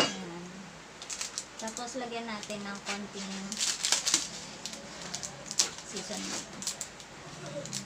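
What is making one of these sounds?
Plastic candy wrappers rustle and crinkle.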